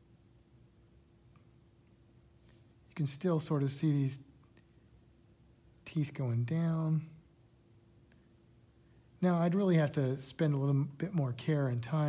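A stylus taps and scrapes softly on a glass tablet.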